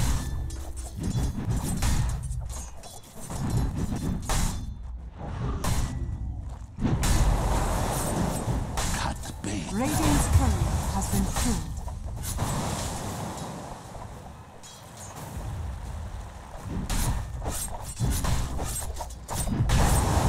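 Game weapons clash and spells crackle in a fast battle.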